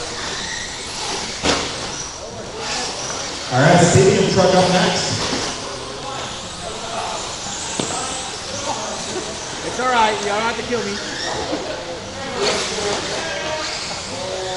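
Small electric race cars whine as they speed around a track.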